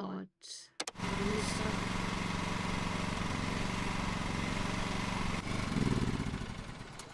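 A small mower engine hums steadily, then dies away.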